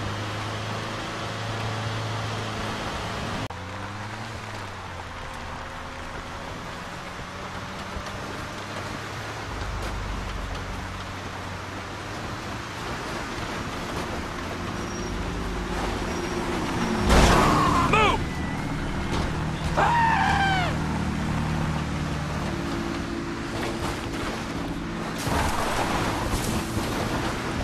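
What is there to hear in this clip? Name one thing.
A vehicle engine hums steadily while driving over a bumpy dirt road.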